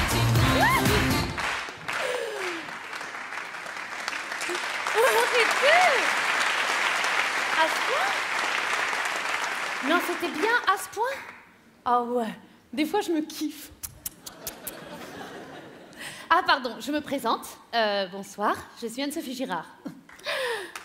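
A young woman speaks with animation through a microphone in a large hall.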